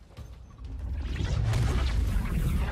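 A bright blast roars.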